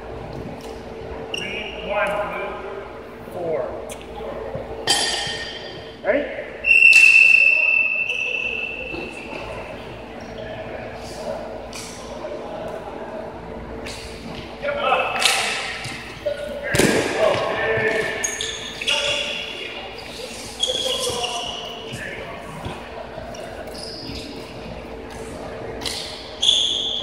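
Floorball sticks clack against a plastic ball.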